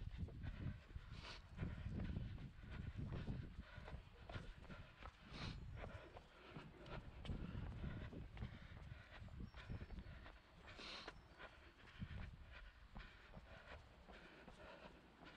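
Footsteps run quickly over cobblestones.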